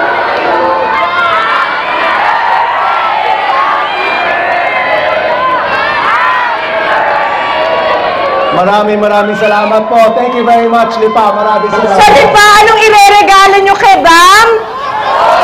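A large crowd sings together loudly.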